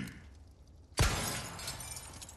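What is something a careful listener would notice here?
A pistol fires a single loud shot that echoes.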